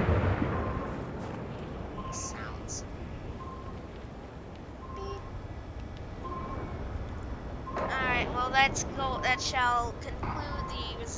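An electronic device beeps at a steady, even pace.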